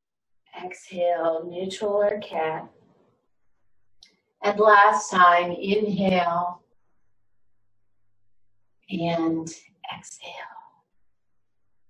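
An older woman speaks calmly and clearly, close by.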